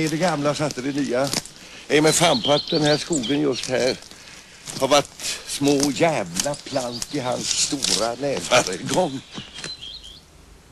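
A young man talks back.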